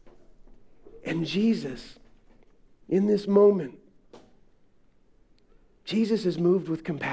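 A middle-aged man speaks through a microphone in an echoing hall.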